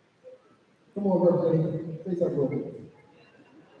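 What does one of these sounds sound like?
A man speaks briefly into a microphone over a loudspeaker.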